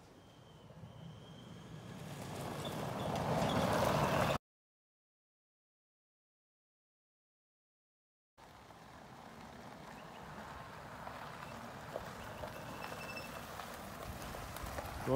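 A small utility vehicle drives closer over dirt, its motor and tyres growing louder.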